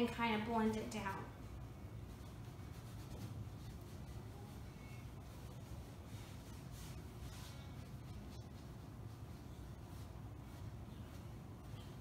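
A paintbrush brushes softly across a canvas.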